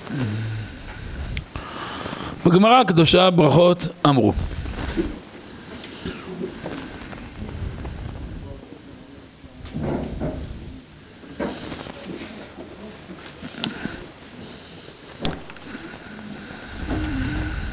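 A man speaks into a microphone in a calm, chanting voice.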